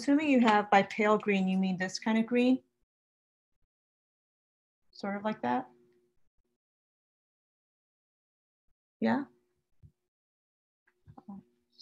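A middle-aged woman speaks calmly and close to the microphone, in short bursts with pauses.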